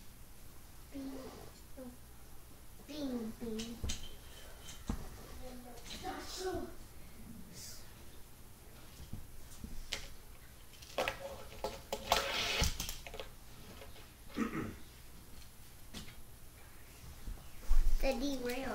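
A young child talks nearby.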